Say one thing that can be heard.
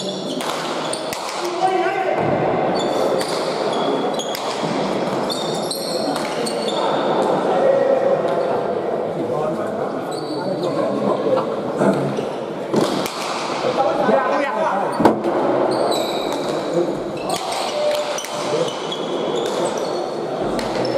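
Players' shoes squeak on the hard floor.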